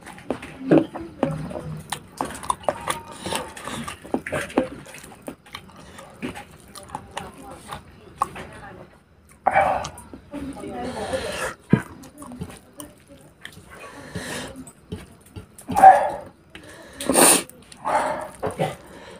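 Fingers squish and mix soft rice on a metal plate.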